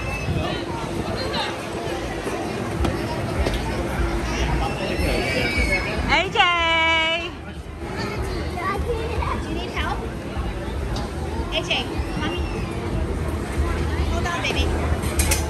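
A crowd of children and adults chatters nearby outdoors.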